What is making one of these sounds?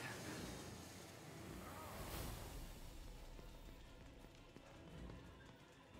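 Footsteps run along a hard floor.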